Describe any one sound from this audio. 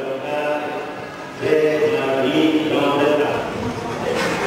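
An elderly man speaks into a microphone, heard through loudspeakers.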